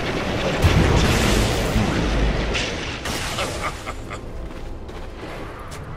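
Sharp hits and zaps of combat sound in quick bursts.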